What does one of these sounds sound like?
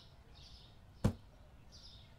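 A ceiling lamp clicks sharply into place.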